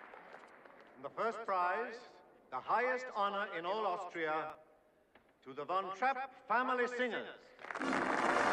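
A middle-aged man speaks loudly and with expression into a microphone.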